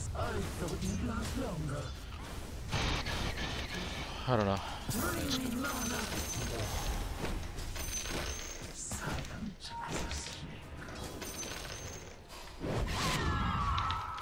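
Spells and blows from a video game whoosh and crack.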